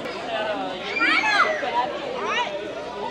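Children squeal in high voices.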